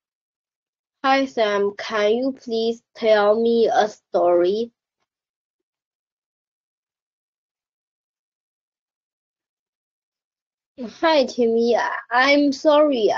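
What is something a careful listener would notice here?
A young woman speaks animatedly through a headset microphone over an online call.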